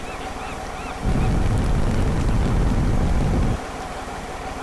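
A large boat crashes down with a deep rumble.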